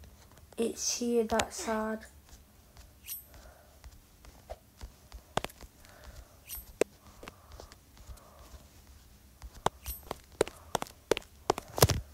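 Footsteps tap on wooden boards.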